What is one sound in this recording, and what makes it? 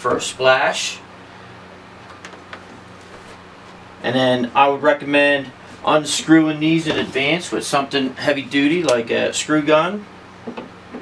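A middle-aged man speaks calmly and explains, close by.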